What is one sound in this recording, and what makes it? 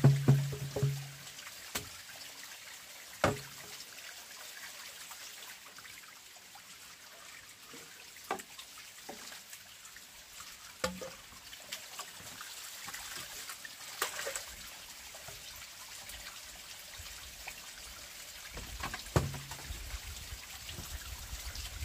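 Hollow bamboo pieces knock and clatter against wood now and then.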